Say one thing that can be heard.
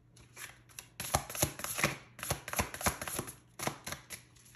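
Playing cards are shuffled with quick riffling and tapping.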